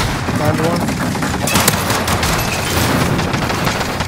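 A loud explosion blasts.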